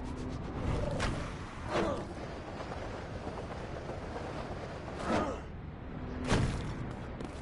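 Heavy thuds sound in a game.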